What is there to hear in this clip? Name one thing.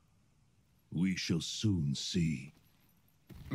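A man answers calmly in a deep voice.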